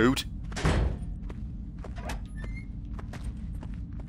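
A door swings open.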